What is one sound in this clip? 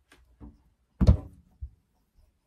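A small toy drops onto a wooden floor with a thud.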